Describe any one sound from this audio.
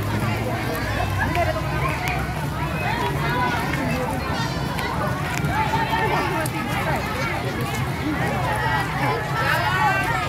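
A crowd of children and adults chatters loudly outdoors.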